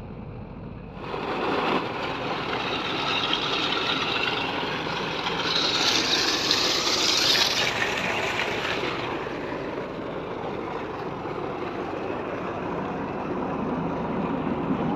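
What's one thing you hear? Muddy water gushes from a pipe and splashes into a pool.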